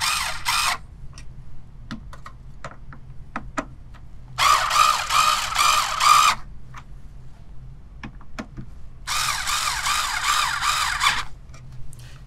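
An electric screwdriver whirs in short bursts.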